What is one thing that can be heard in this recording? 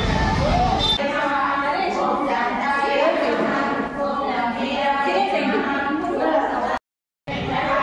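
Women sing together in an echoing hall.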